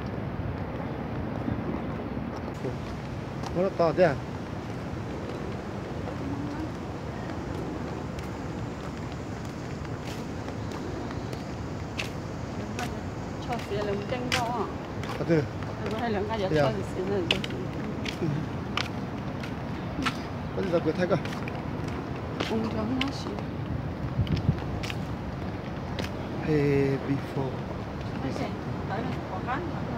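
Footsteps tap on pavement while walking.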